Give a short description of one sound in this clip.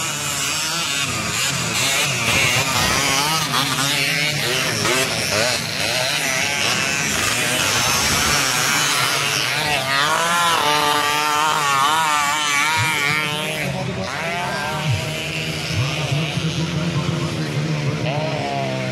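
Dirt bike engines rev and whine loudly, rising and falling in pitch.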